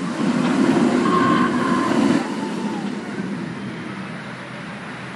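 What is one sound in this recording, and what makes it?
A roller coaster train roars loudly along its track, then fades into the distance.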